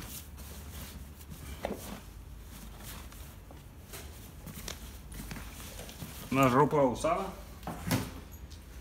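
Clothes rustle as hands rummage through a bag.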